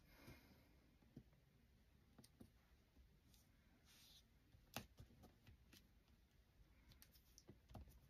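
Fingers press and rub paper down on a hard surface.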